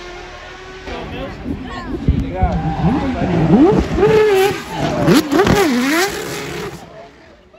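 A drifting supercar engine revs hard, rising and falling in pitch.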